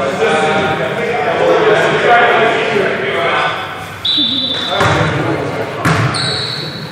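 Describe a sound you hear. Men talk and call out in a large echoing gym.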